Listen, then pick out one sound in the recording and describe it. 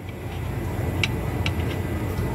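Metal tongs clink against a tray.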